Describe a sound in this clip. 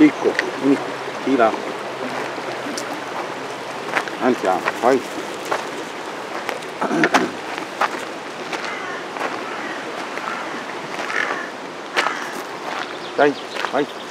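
Dog paws scrabble on gravel.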